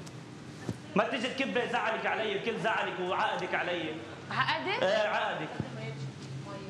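A young man talks with animation.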